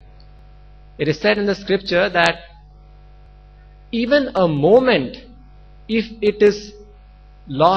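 A young man speaks calmly into a microphone, heard through a loudspeaker system.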